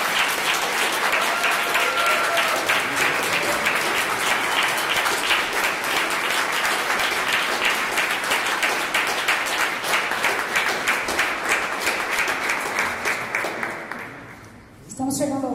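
An audience claps and cheers loudly in a large room.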